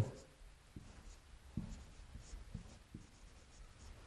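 A marker squeaks and taps faintly on a whiteboard.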